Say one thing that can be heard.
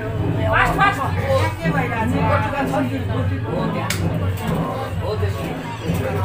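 Men and women chatter together close by.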